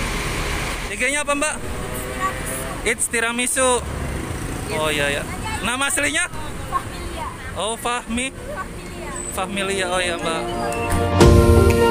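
A young woman talks cheerfully and laughs close by.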